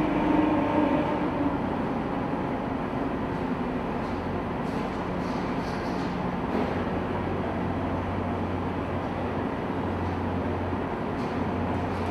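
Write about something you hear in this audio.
Steel tracks clank and grind on a steel deck.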